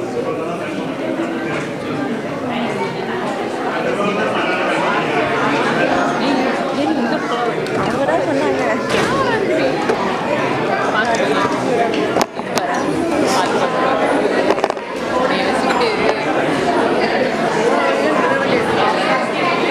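A woman speaks with animation in a large echoing hall.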